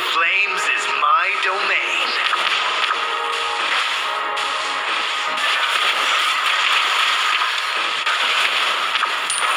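Game spells burst and clash in a battle.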